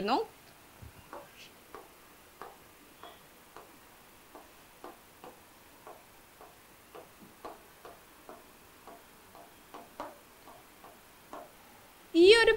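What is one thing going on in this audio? A marker squeaks and taps faintly on a board.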